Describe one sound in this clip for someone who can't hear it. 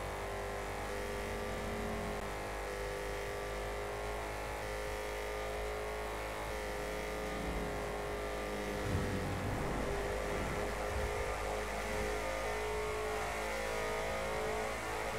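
A hot rod's engine drones at cruising speed.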